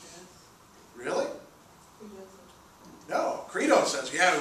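A man speaks calmly and clearly in a lecturing tone, close by.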